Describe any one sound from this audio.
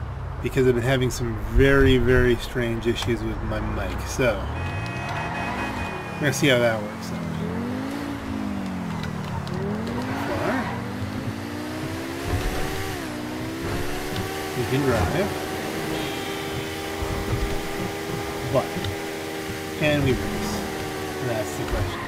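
A car engine revs up and down as the car drives along a road.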